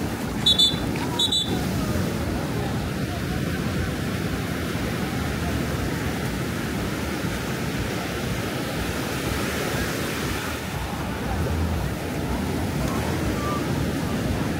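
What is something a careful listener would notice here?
Waves wash steadily onto the shore.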